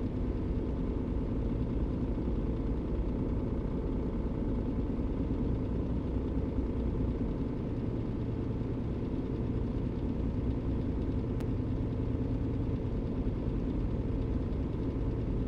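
A diesel truck engine drones steadily from inside the cab while cruising.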